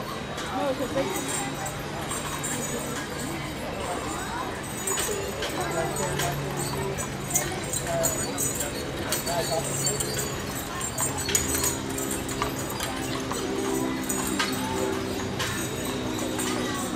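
Horse hooves clop on pavement.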